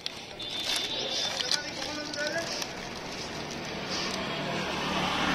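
A plastic wrapper crinkles and rustles in someone's hands.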